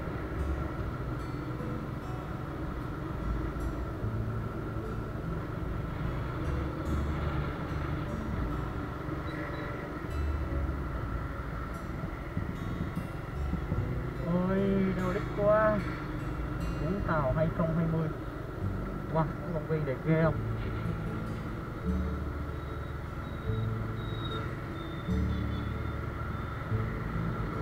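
A motorbike engine runs while riding along a road.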